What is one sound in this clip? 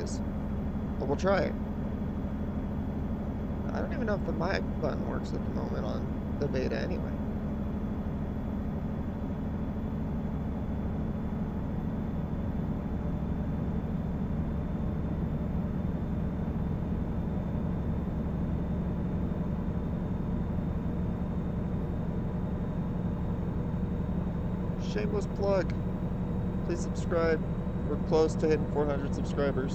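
A truck engine drones steadily while driving along a road.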